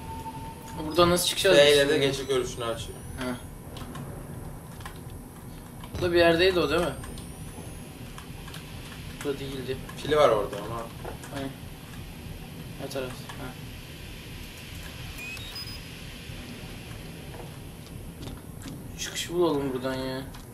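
A teenage boy talks excitedly close to a microphone.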